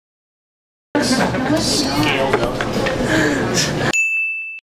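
A young man laughs and talks with animation.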